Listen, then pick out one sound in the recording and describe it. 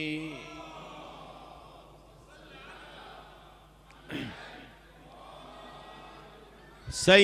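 A man speaks calmly into a microphone, with a slight echo.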